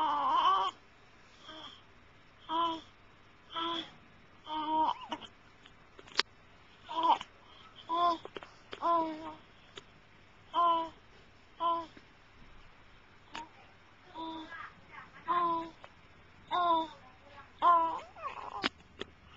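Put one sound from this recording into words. A baby coos and babbles in short bursts close by.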